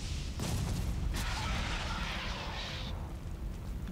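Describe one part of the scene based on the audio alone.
A fiery blast bursts and hisses.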